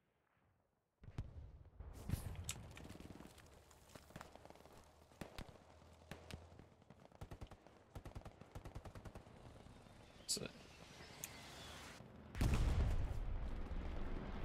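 Gunshots crack outdoors in a forest.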